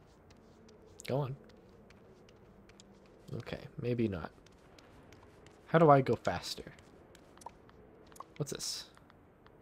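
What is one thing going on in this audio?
A young man speaks casually into a close microphone, in short bursts.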